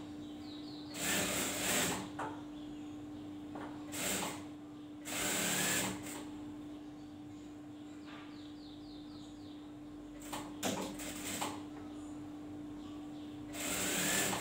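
A sewing machine whirs in short bursts.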